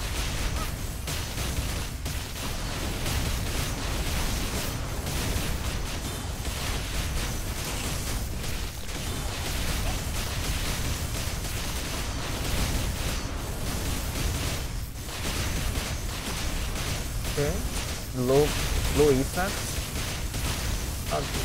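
Sword strikes and magic blasts crash rapidly, one after another.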